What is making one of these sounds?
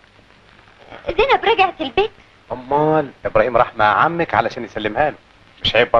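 A man speaks nearby in a calm voice.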